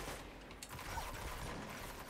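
Energy weapons fire in quick bursts.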